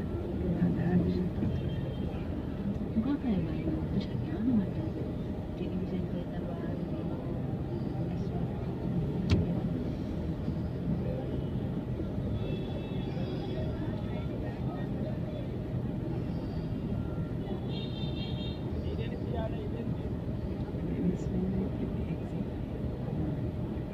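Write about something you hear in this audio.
A busy street crowd murmurs and chatters all around.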